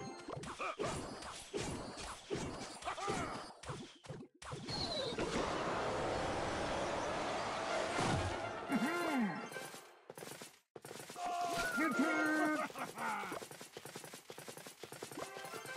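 Video game sound effects of battling troops clash and burst.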